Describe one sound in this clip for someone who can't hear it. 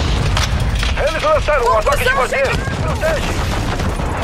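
A young man talks with animation close to a headset microphone.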